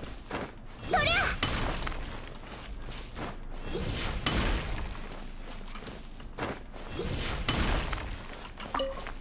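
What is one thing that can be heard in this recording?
A blade strikes with sharp, crackling impacts.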